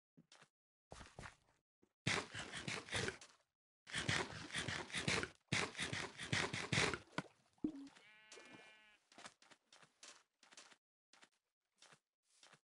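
Footsteps crunch on sand in a video game.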